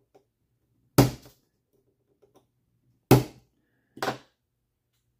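Small plastic parts click against each other.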